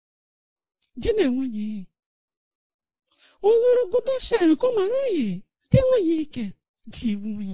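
An elderly woman speaks loudly and excitedly.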